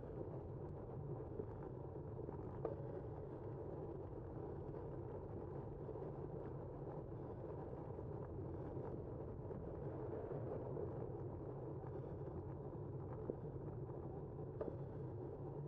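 Tyres roll steadily over smooth pavement.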